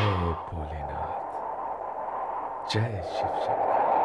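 A man speaks in a deep, calm voice.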